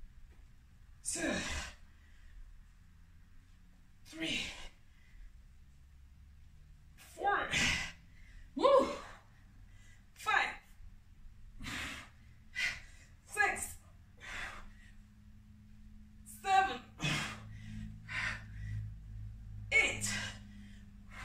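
A young woman speaks in short bursts between breaths, close by.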